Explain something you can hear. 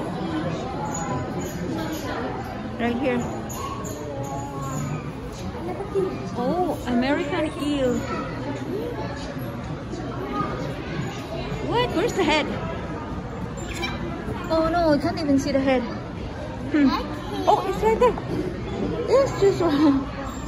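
Children and adults chatter nearby.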